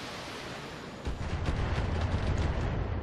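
Gunfire and blasts rumble steadily.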